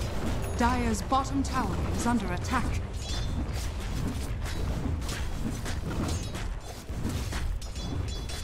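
Spell effects and weapon hits crack and thud during a fast video game battle.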